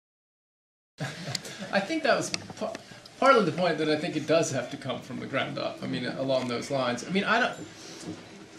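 A middle-aged man talks calmly and cheerfully nearby.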